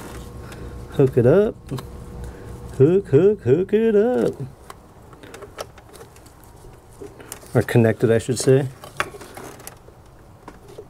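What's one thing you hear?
Plastic engine parts click and rattle under a pair of hands.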